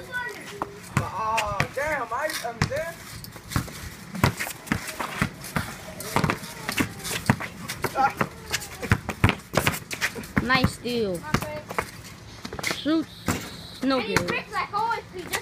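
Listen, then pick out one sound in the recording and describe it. A basketball bounces on concrete.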